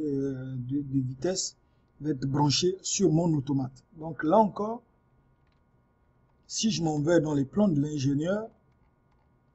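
A man speaks calmly and close into a microphone, explaining.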